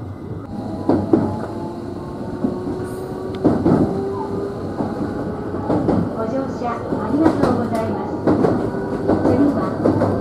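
Train wheels squeal faintly on a curve.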